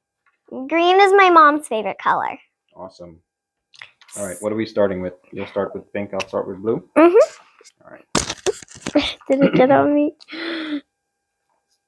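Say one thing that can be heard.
A young girl speaks in a high voice nearby.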